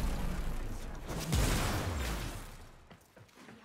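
A rushing whoosh swells and fades.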